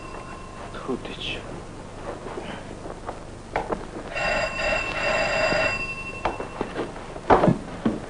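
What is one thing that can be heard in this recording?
A man rustles a blanket on a couch.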